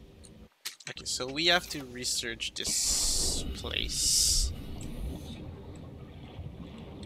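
Water swishes and bubbles around a swimming diver.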